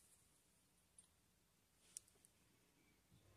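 A small plastic cap clicks as fingers handle it.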